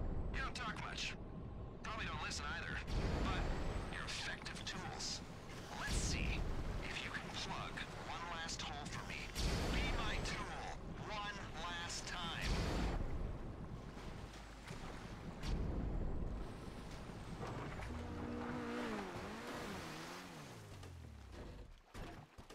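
Water splashes and churns around a car driving through it.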